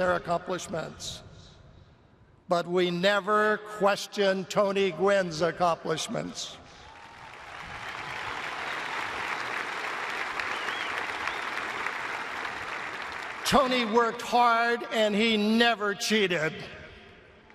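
An elderly man speaks emotionally through a microphone.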